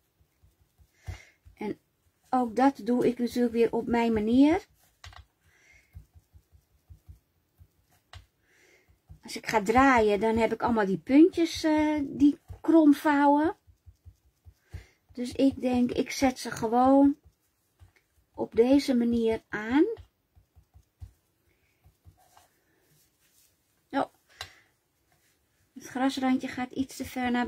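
An ink tool dabs and taps softly on paper.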